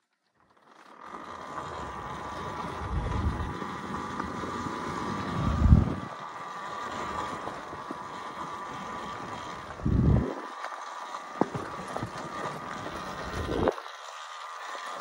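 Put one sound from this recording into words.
Wind rushes past a fast-moving rider.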